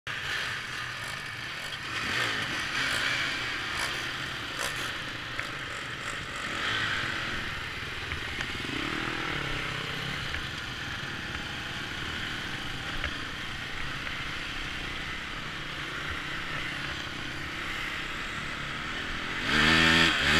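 Dirt bike engines idle and rev close by.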